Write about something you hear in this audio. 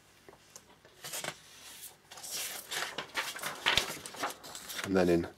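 Paper rustles as a sheet is turned over.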